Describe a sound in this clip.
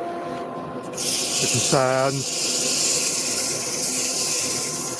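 Sandpaper hisses against spinning wood.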